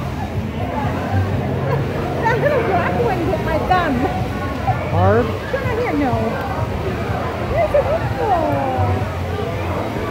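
Children chatter nearby.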